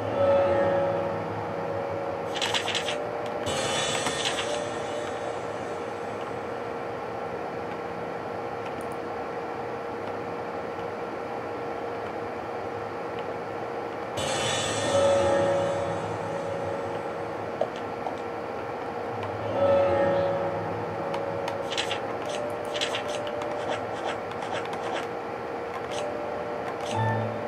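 Video game music plays through a loudspeaker.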